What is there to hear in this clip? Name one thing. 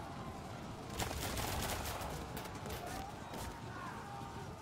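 Musket shots crack across a battlefield.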